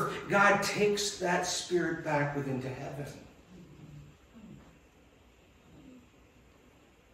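An elderly man preaches with animation through a microphone in an echoing hall.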